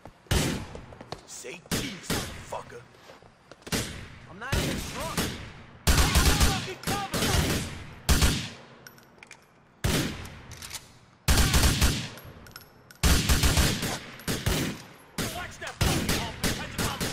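Gunshots fire in rapid bursts, echoing off buildings.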